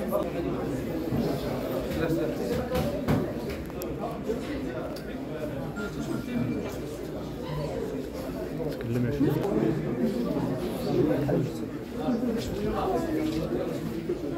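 Young men talk quietly nearby in a room.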